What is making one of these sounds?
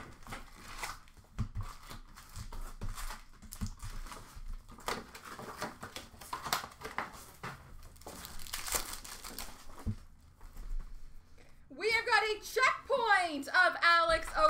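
Plastic wrappers rustle and crinkle as packs are handled.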